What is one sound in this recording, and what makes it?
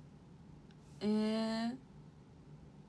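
A young woman makes a long, high drawn-out exclamation close to a microphone.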